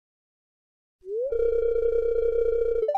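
A steady electronic tone chimes.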